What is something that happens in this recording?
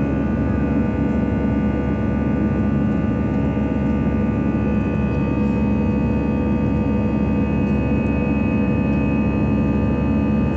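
Jet engines roar and whine steadily, heard from inside an airliner cabin as it climbs after takeoff.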